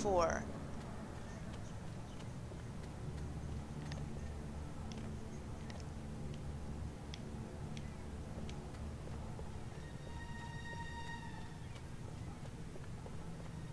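Footsteps run across cobblestones.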